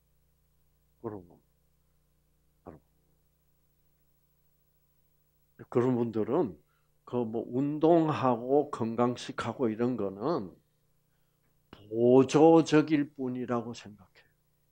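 An elderly man speaks calmly through a headset microphone.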